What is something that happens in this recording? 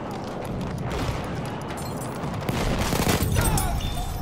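Rifle shots crack.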